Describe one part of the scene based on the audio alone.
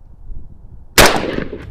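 A rifle fires a single loud shot outdoors.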